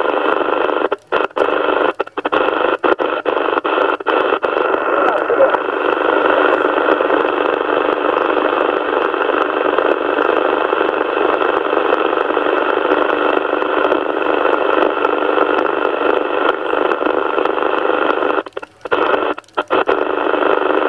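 Radio static cuts out briefly as channels are switched.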